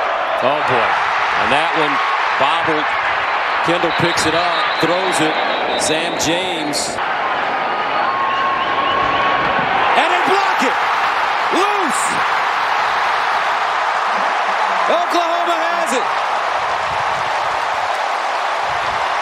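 A large stadium crowd roars and cheers, swelling loudly after a touchdown.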